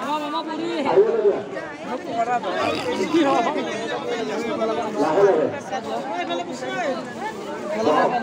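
A crowd of men and women talks and shouts loudly all around, close by, outdoors.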